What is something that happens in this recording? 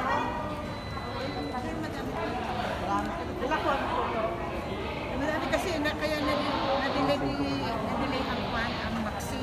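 A woman talks back close by.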